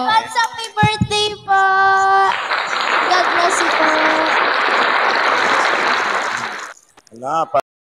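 A young woman sings into a microphone, heard through a live online stream.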